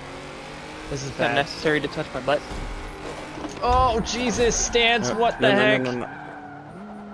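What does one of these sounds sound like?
Car tyres squeal while drifting.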